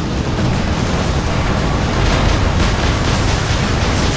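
Heavy guns fire in rapid, rumbling bursts.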